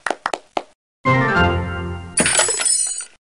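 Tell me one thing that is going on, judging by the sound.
A wooden crate breaks apart with a crash.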